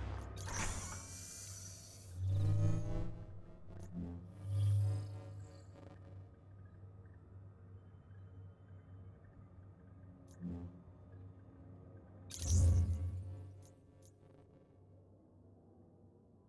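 A low electronic hum drones steadily.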